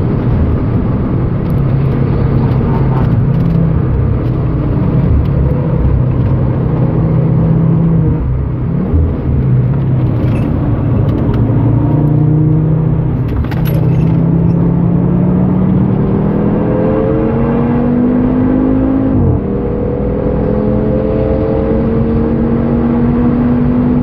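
A car engine roars loudly from inside the cabin, dropping through corners and revving up again on the straights.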